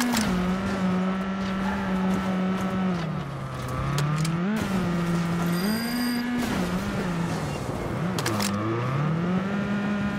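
Tall grass and bushes brush and scrape against a car's body.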